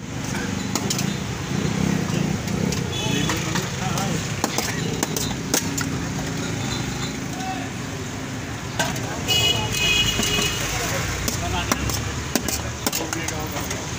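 Metal spoons clink and scrape against steel plates.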